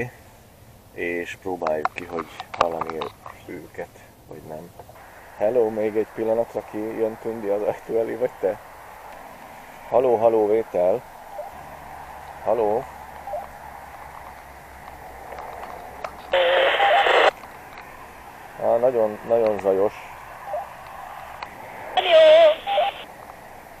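A middle-aged man speaks close by in short bursts, calling into a handheld radio.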